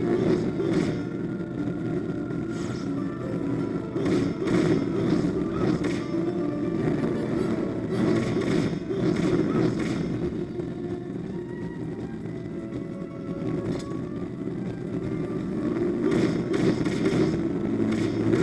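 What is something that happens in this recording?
A sword swishes through the air in quick strikes.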